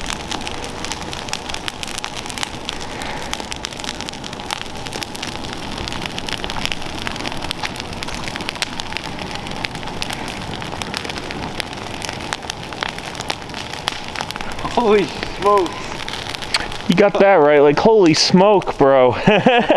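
A leaf fire crackles and pops steadily.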